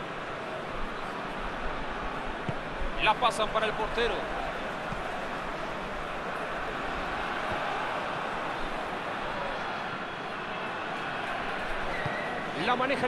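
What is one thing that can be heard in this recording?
A stadium crowd roars in a steady din.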